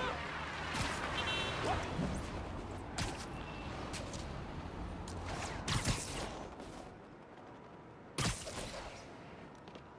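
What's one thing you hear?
Wind rushes past in quick gusts.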